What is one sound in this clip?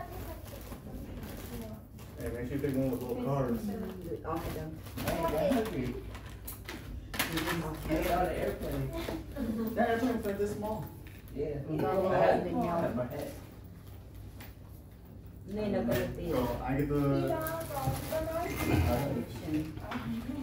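Plastic bags rustle as they are rummaged through.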